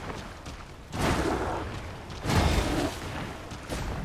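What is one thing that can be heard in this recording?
A magic blast bursts with a crackling roar.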